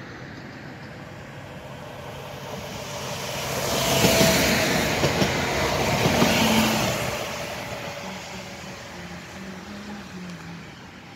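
A passenger train approaches and rushes past close by, then fades into the distance.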